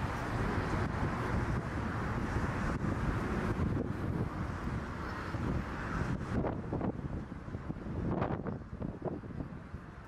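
A jet airliner roars faintly high overhead.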